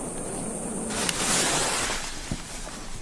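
A firework fuse hisses and sputters.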